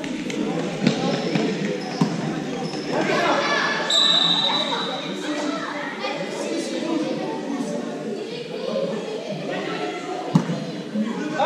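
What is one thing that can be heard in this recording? A ball thuds on a hard floor.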